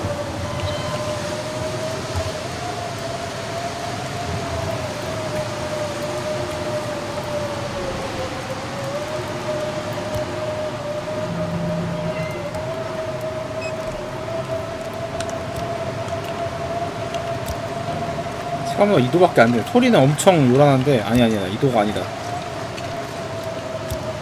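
Wind howls steadily outdoors.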